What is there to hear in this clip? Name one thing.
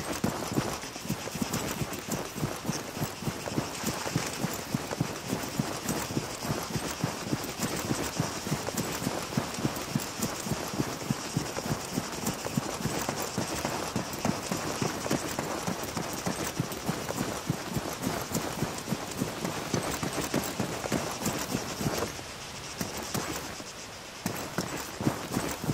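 Footsteps crunch quickly over dry grass and dirt.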